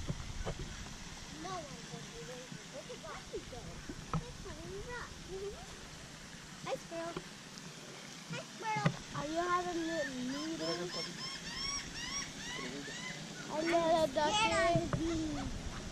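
Birds call repeatedly near the water.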